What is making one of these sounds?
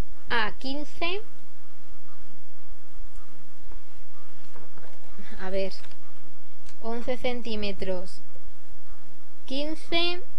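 A thin plastic sleeve crinkles softly as hands handle it.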